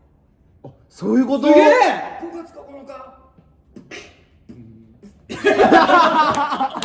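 Young men laugh and cheer loudly.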